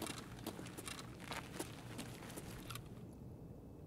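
Footsteps crunch on gravel and debris.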